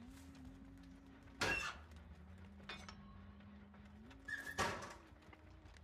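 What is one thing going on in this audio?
A wooden locker door creaks and bangs open.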